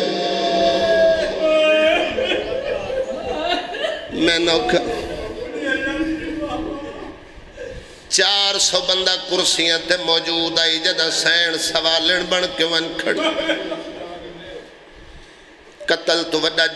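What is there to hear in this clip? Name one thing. A man speaks forcefully through a microphone and loudspeakers, his voice echoing.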